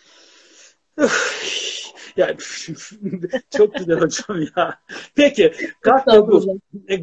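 A woman laughs heartily over an online call.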